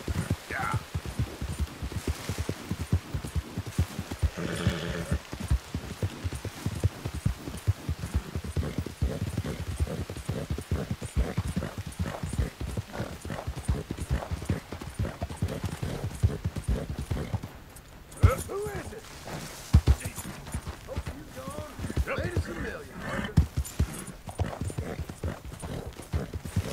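Horse hooves thud rapidly on soft ground at a gallop.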